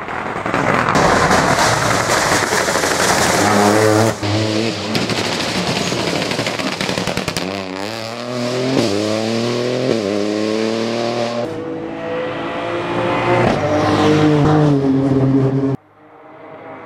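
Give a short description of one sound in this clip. A rally car engine roars and revs hard as cars race past close by.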